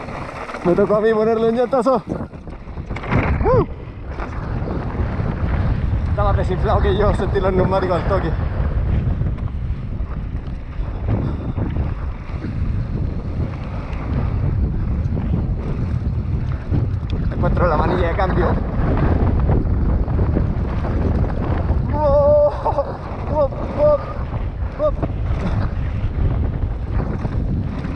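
Wind rumbles loudly past the rider outdoors.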